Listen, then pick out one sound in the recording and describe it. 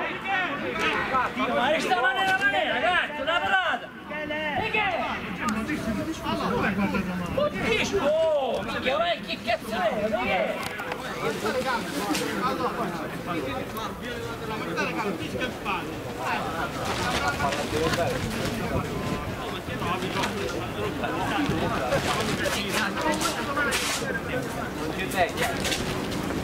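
Young men argue loudly and with animation outdoors.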